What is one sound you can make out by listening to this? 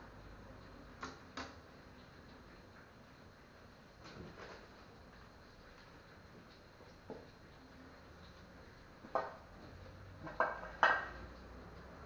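Plastic bowls clatter and knock against a counter.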